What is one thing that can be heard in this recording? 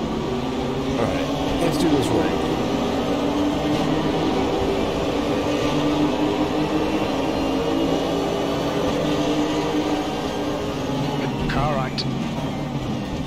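A race car engine roars loudly, revving up through the gears.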